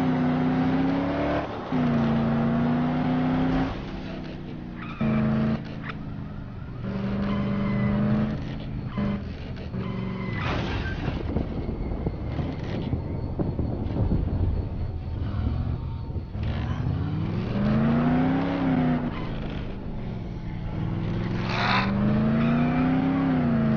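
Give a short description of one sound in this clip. Tyres rumble over a road.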